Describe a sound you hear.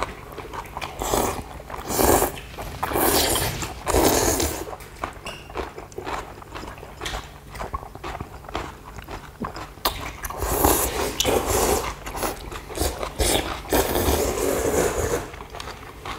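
People slurp noodles loudly, close by.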